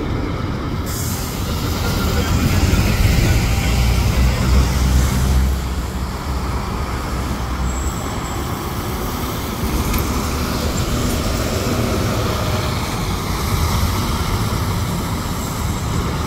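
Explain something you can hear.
A coach engine rumbles loudly as a coach drives past.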